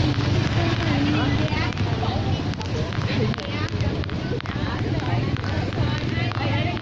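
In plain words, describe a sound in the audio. A young woman talks close to the microphone outdoors on a busy street.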